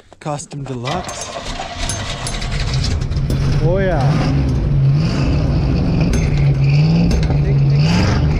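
A truck engine starts and idles with a low rumble.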